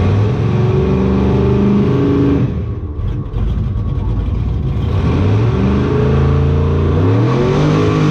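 A loud race car engine roars up close, dropping briefly and then revving up again.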